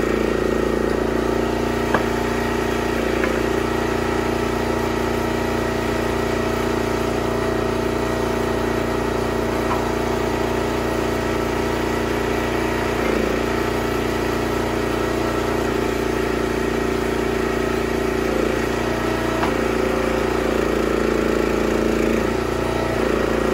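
A hydraulic log splitter strains and splits wood.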